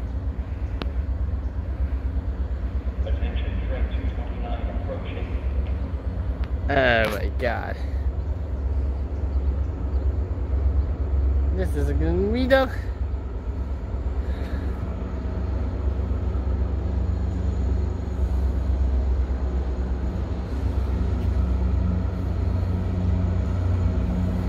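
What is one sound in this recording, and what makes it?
A train rumbles as it approaches slowly from a distance.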